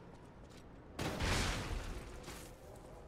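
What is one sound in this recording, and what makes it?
A fiery explosion bursts with a roar.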